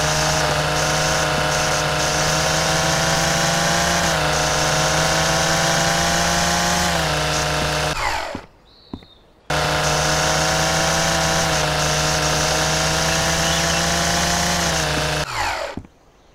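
A string trimmer whines loudly and steadily as it cuts grass, stopping briefly partway through.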